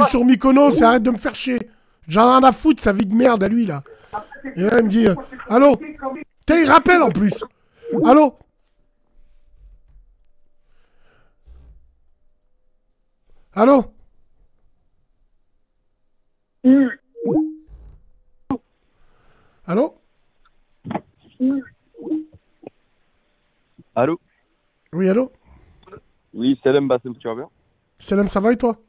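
A man speaks with animation close to a microphone, pausing often.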